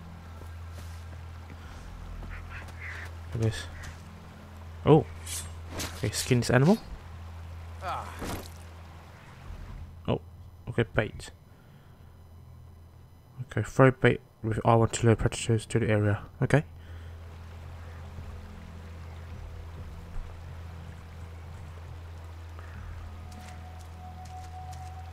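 Water burbles steadily over rocks in a shallow stream.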